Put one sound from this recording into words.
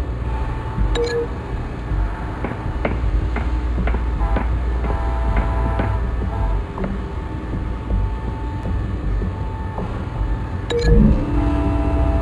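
A soft electronic chime sounds as a menu opens.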